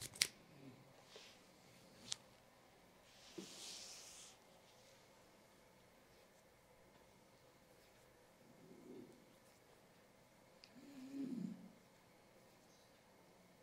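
Fingers softly rub skin on a neck and ears.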